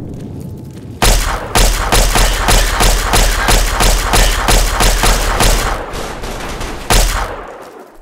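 An automatic gun fires rapid bursts of shots.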